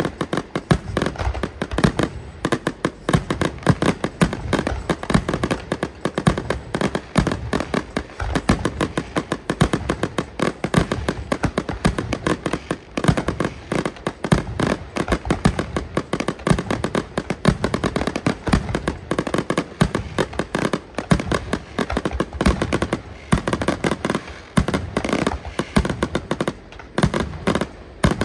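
Fireworks bang and crackle in rapid bursts, echoing outdoors.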